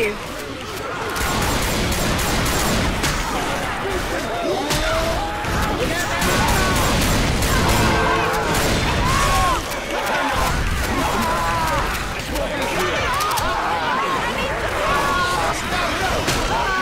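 Zombies growl and shriek.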